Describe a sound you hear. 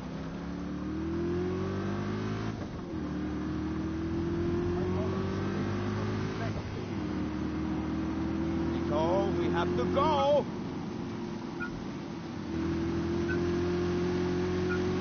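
A car engine roars and climbs in pitch as it speeds up, dropping briefly at each gear change.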